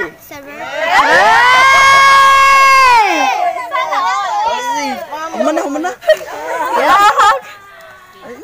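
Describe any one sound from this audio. A young man calls out loudly and cheerfully close by.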